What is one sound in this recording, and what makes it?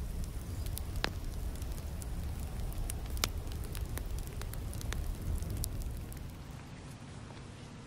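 Wind blows outdoors, rumbling against the microphone.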